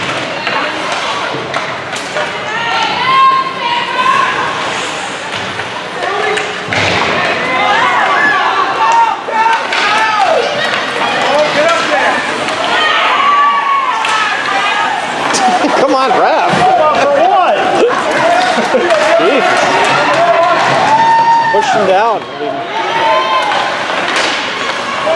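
Spectators shout and cheer loudly in an echoing rink.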